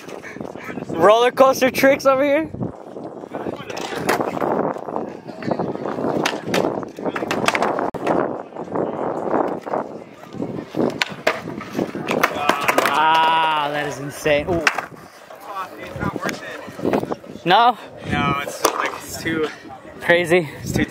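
Skateboard wheels roll and rumble on concrete.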